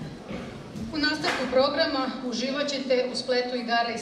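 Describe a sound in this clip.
A woman reads out through a microphone and loudspeakers.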